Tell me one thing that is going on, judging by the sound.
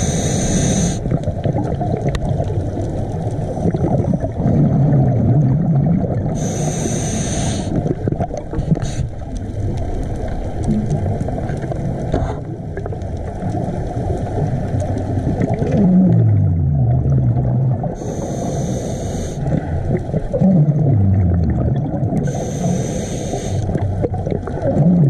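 Water rushes with a low, muffled rumble all around.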